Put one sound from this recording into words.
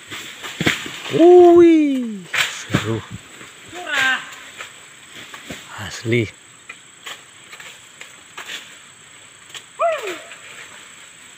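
A man shouts out from high up a tree, some way off.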